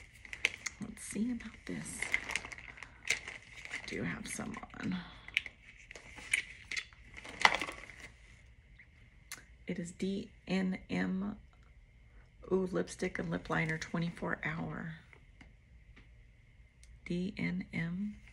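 A middle-aged woman speaks calmly, close to the microphone, with pauses.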